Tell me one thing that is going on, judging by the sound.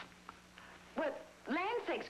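A woman speaks with a raised, anxious voice.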